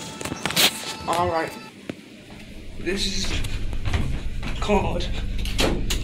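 A young man speaks close to a phone microphone.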